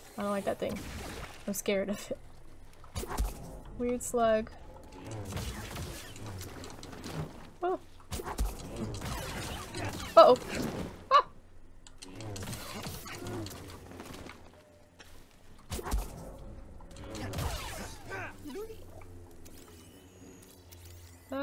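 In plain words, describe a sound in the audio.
An energy blade swings with buzzing whooshes.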